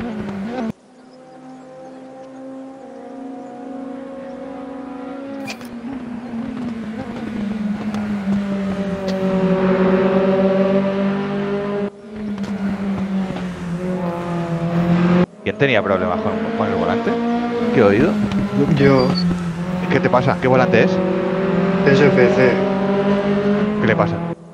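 Racing car engines roar and rev, rising and falling as the cars shift gears.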